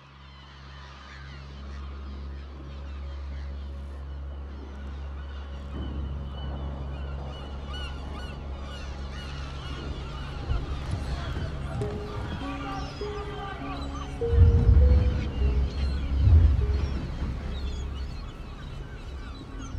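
Seagulls cry overhead.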